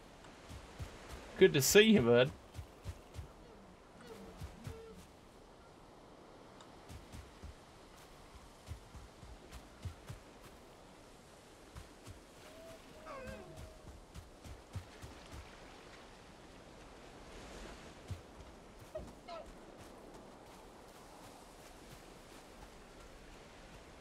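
Footsteps crunch through undergrowth.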